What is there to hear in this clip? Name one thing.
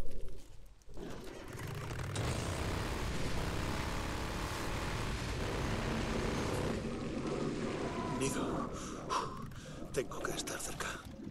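A motorcycle engine runs steadily.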